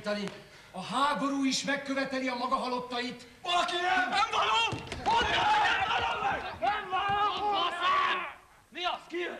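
Men sing loudly together.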